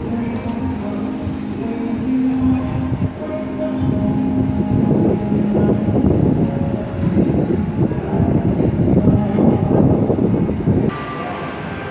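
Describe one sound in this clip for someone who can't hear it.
Road traffic rumbles past outdoors.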